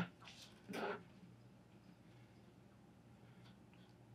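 Scissors snip through thin sheet material.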